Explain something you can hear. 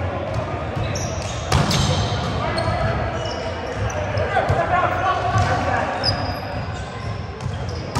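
Sneakers squeak and thud on a wooden floor.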